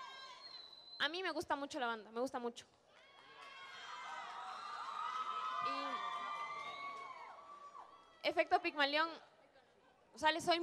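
A young woman speaks into a microphone with animation, heard through loudspeakers in an echoing hall.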